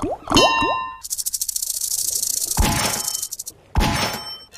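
Reels spin with a quick rattling whir.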